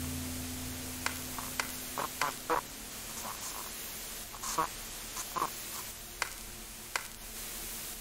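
Game buttons click sharply.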